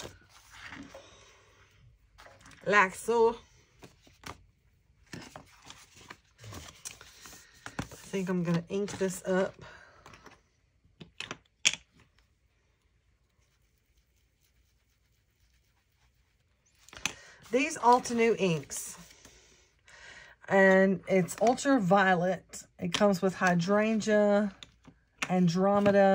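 Paper rustles and crinkles under handling.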